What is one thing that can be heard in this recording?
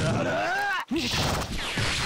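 A magic spell crackles and bursts.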